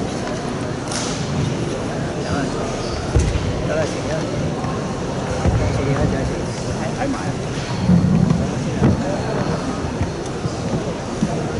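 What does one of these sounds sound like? Feet thud and shuffle on a padded floor.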